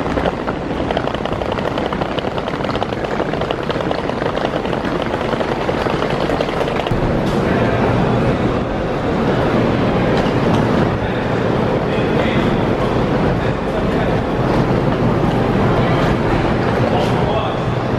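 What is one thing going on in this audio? Suitcase wheels rumble across a concrete floor.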